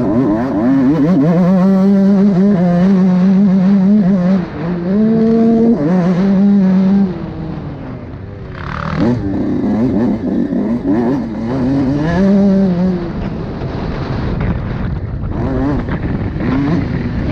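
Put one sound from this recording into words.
A motorcycle engine revs hard up close, rising and falling in pitch as gears change.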